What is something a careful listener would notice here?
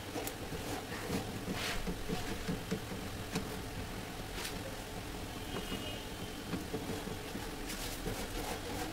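Hands shift a thin metal panel, which rattles and scrapes against a frame.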